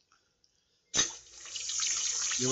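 Water splashes steadily from a small fountain into a basin.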